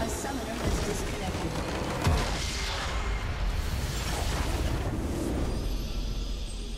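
A huge structure blows up with a deep, rumbling boom.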